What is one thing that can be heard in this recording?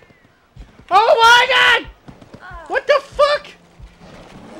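An elk bellows loudly in long, wavering calls.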